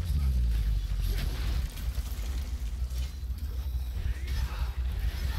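A deep rumbling game soundtrack drones throughout.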